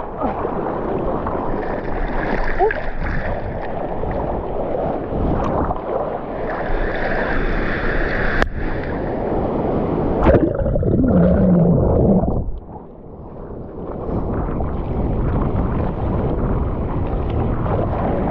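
Waves crash and churn loudly close by.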